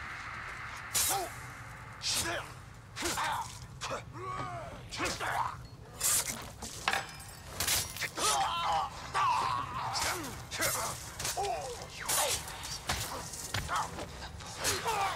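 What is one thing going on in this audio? Swords clash and strike sharply in a fight.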